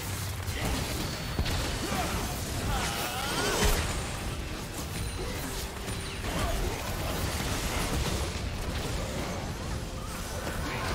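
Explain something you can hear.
Magic spells whoosh and crackle as game characters fight.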